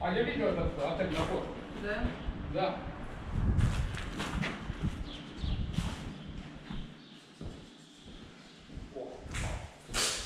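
Footsteps crunch over scattered debris on a hard floor.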